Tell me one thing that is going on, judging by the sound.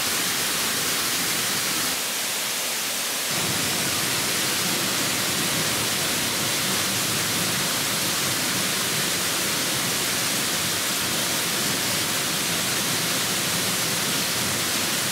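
A small waterfall splashes steadily onto rocks nearby.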